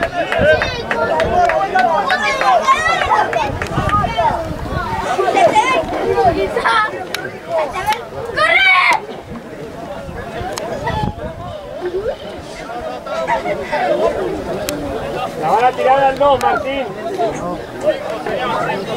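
Men shout and call to each other outdoors at a distance.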